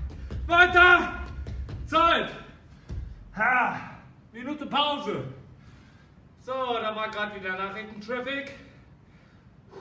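A man speaks loudly and with animation close by in an echoing room.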